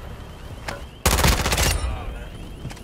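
A gun fires a loud rapid burst of shots.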